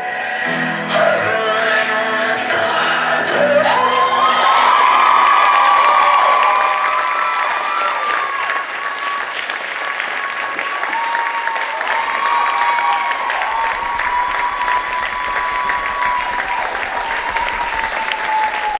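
A crowd of young men and women cheers and shouts.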